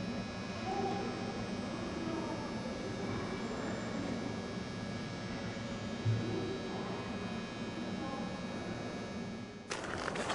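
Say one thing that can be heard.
A train rumbles slowly over the tracks.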